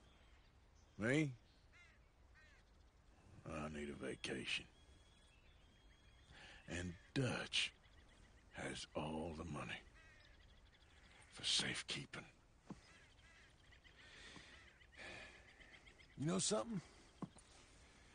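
A younger man answers in a low, rough voice.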